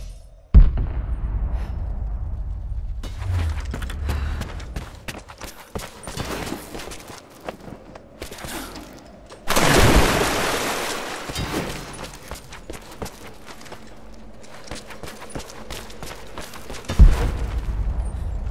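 Footsteps thud on wooden floors and rubble.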